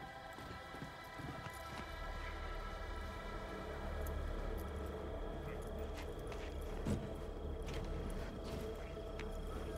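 Footsteps tap on concrete.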